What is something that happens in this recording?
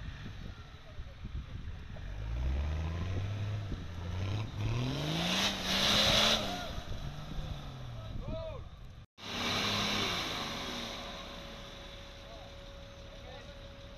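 Tyres spin and splash in thick mud.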